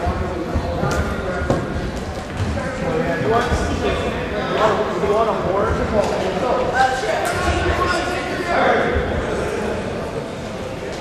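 Teenage boys talk over one another in an echoing gym.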